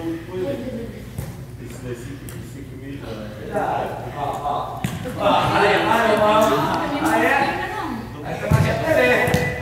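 A football is kicked with sharp thuds in a large echoing hall.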